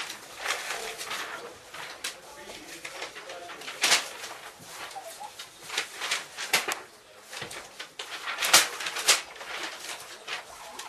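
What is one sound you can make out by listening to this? Sheets of paper rustle and flutter.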